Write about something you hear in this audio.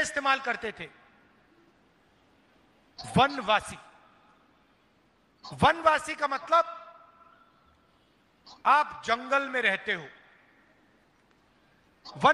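A middle-aged man speaks forcefully into a microphone in short bursts, with a slight echo.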